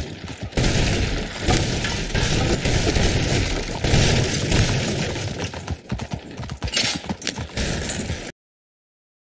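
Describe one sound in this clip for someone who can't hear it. A horse-drawn wagon rattles and creaks as it rolls along.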